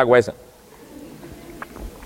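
A man sips from a cup.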